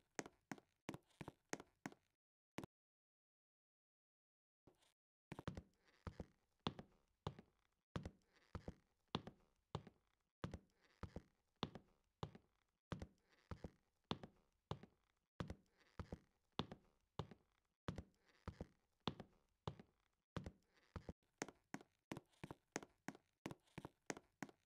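Quick footsteps tap in an even rhythm.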